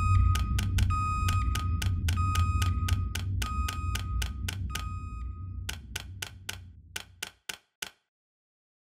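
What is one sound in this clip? A game menu ticks rapidly with short beeps as a list scrolls.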